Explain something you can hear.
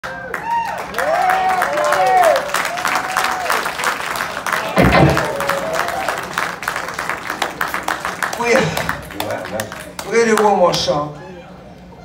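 People in an audience whistle shrilly.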